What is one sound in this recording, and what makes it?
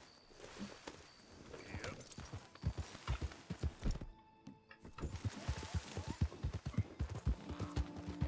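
Horse hooves thud steadily at a gallop.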